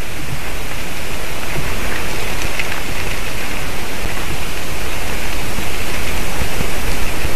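Wind blows steadily outdoors, rumbling against the microphone.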